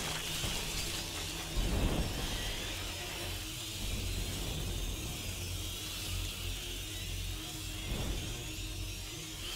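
A torch flame crackles.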